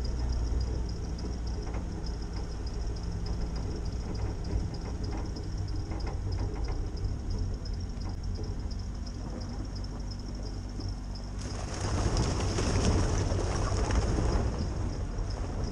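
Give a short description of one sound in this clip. Tyres bump and rattle over a rough dirt track.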